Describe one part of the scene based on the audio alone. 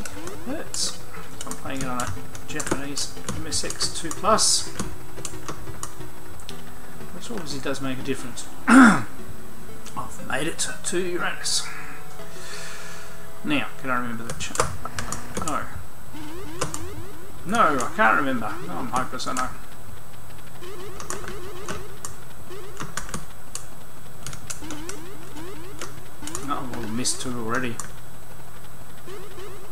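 An 8-bit computer game fires zapping shots and small explosions.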